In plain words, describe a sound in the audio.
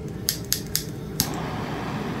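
A gas torch igniter clicks several times.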